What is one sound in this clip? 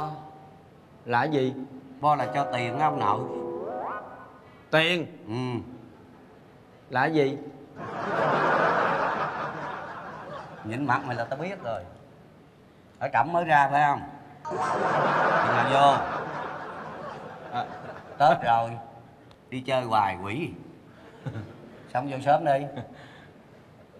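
A second man answers through a microphone in a questioning tone.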